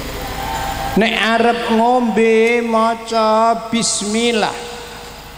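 An elderly man speaks with animation into a microphone, heard through a loudspeaker.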